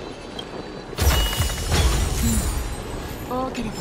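A treasure chest bursts open with a bright, shimmering chime.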